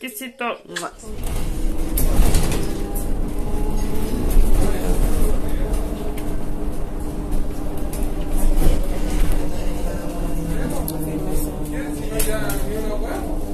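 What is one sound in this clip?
A bus engine rumbles steadily while the bus drives.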